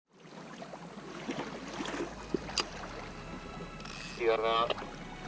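Water laps against a kayak hull.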